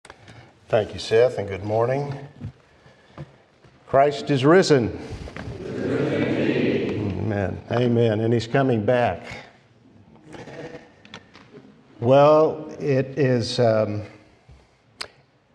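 An elderly man speaks calmly through a microphone, with pauses.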